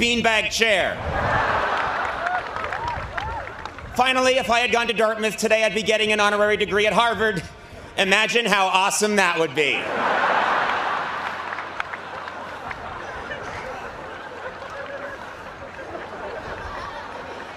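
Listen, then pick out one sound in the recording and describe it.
A large crowd laughs and applauds outdoors.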